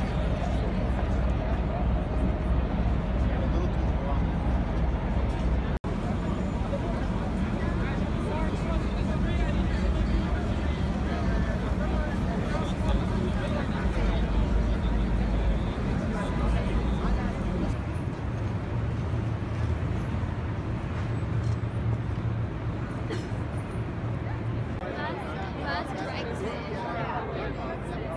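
A large crowd murmurs and chatters outdoors.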